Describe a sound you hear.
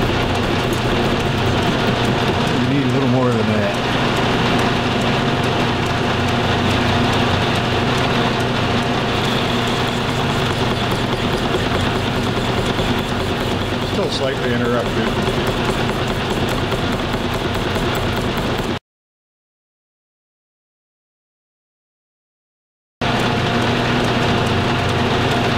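A metal lathe motor hums steadily.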